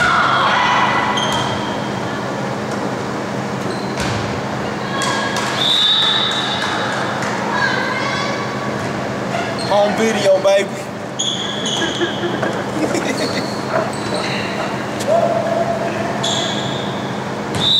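A crowd of spectators murmurs and chatters in an echoing gym.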